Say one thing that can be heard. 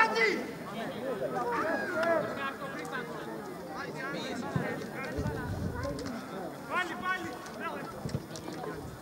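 Men shout and call out across an open outdoor field.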